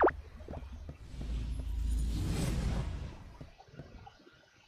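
A soft whooshing game sound swells and fades.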